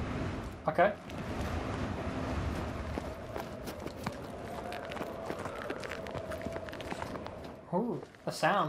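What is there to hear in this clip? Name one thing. Boots crunch through snow in quick steps.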